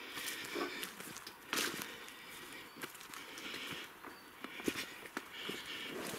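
Footsteps rustle and crunch through leaves and undergrowth outdoors.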